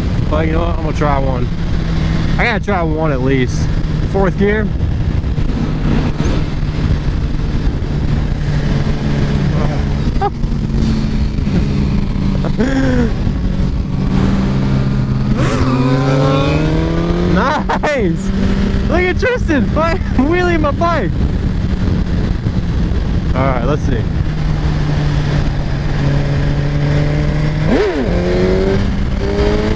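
A motorcycle engine hums steadily close by and changes pitch as it speeds up and slows down.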